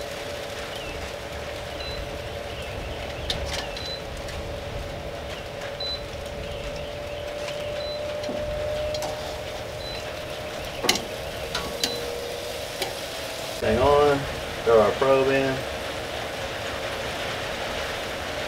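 Metal tongs click and scrape against a grill grate.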